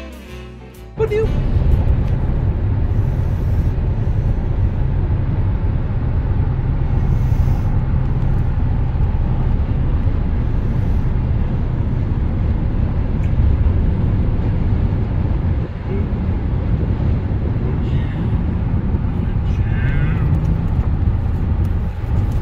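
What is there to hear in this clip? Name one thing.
A car engine and tyres rumble steadily on a highway, heard from inside the car.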